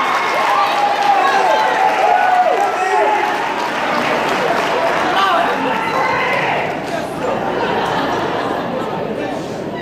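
A large choir sings together in an echoing hall.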